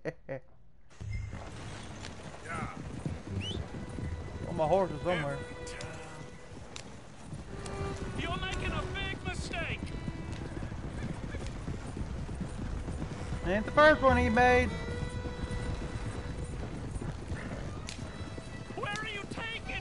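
A horse-drawn wagon rolls and rattles along a dirt track.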